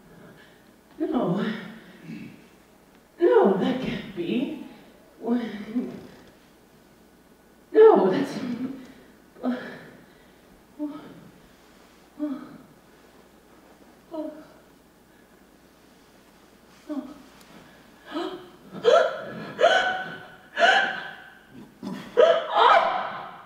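A young woman vocalizes in short, loud bursts through a microphone, with pauses between them.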